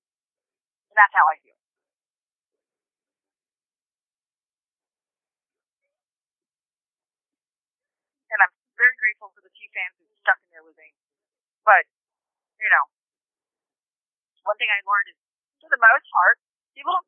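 A young woman speaks in short bursts into a microphone, with long pauses.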